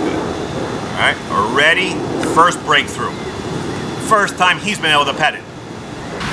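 A man speaks to a dog in a coaxing voice close by.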